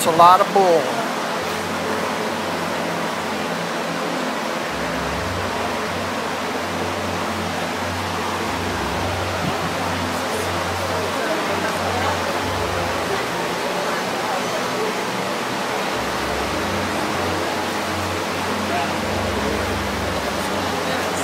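An electric fan whirs steadily nearby.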